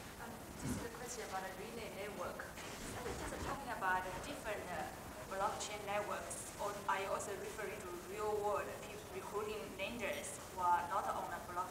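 A man speaks calmly into a microphone over a loudspeaker in a large room.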